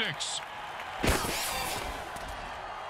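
Armoured players crash into each other with a heavy thud.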